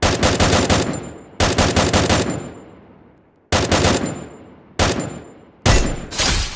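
A rifle fires in rapid bursts, each shot ringing out with a short echo.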